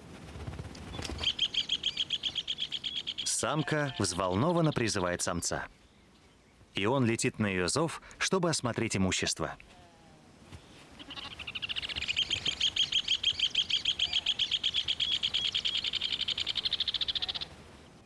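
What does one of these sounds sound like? Birds sing a loud, rapid, chattering trill close by.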